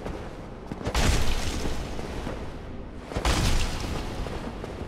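A sword slashes and strikes with heavy thuds.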